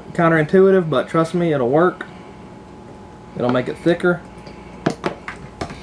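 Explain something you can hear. Oil pours and glugs from a bottle into a jar.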